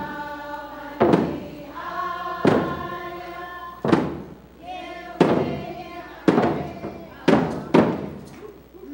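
A hand drum booms in a slow, steady beat.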